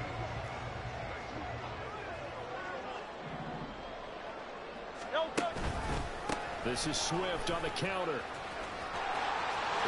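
A large stadium crowd murmurs steadily.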